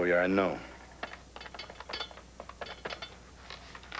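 Small objects clink and rattle as a man handles them.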